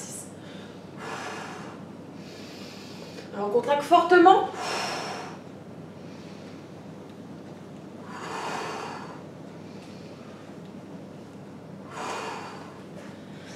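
A young woman breathes out sharply.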